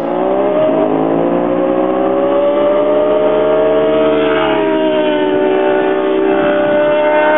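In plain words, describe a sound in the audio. Motorcycle engines scream at high revs, shifting pitch as the bikes accelerate past.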